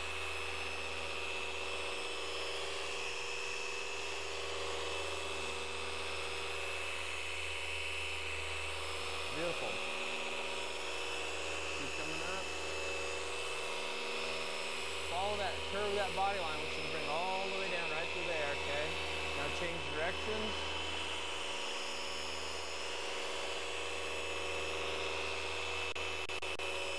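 A polishing machine hums steadily throughout.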